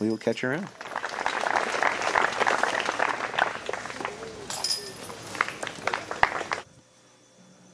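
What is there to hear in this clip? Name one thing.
A small crowd cheers and claps.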